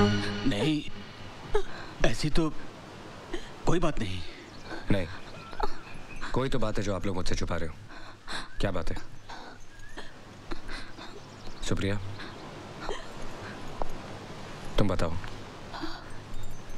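An older man speaks in a grave, emotional voice.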